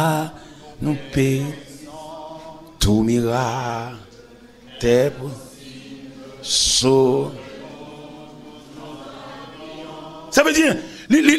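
A man preaches with animation, heard through a microphone in a reverberant hall.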